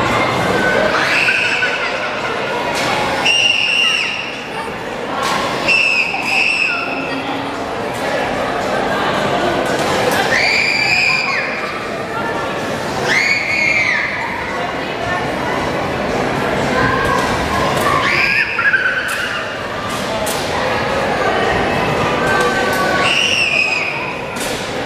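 Young girls scream with excitement close by.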